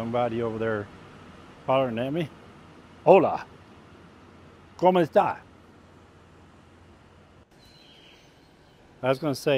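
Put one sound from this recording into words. A middle-aged man speaks calmly and close into a clip-on microphone, in short phrases with pauses.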